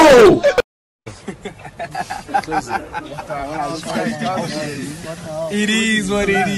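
A young man laughs loudly close by.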